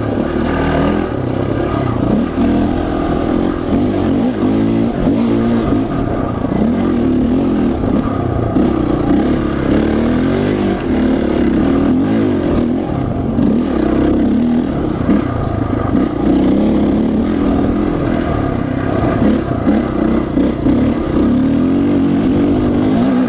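Tyres crunch over a rough dirt track.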